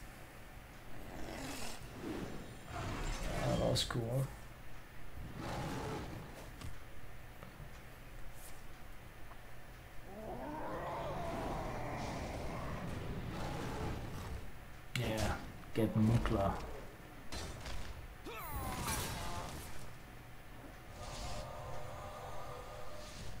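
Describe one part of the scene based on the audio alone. Magical chimes and whooshes sound from a card game.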